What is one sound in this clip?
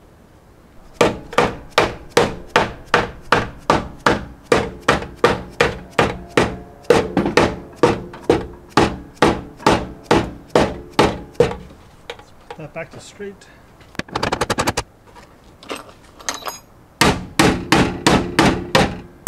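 A hammer bangs repeatedly on sheet metal, ringing sharply in a steady rhythm.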